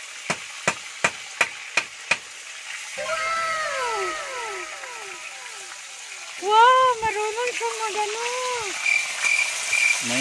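Oil sizzles in a frying pan.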